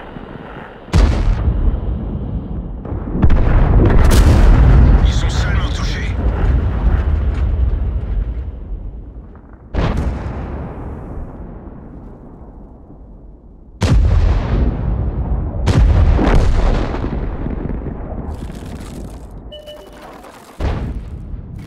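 Tank guns fire loud booming shots that roll away slowly.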